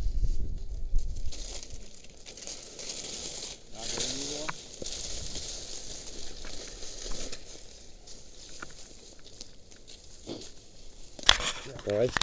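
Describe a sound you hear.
Wind rustles through trees outdoors.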